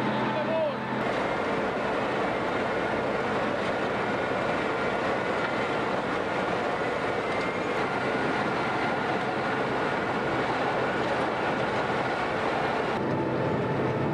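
A harvesting machine rumbles and clatters steadily.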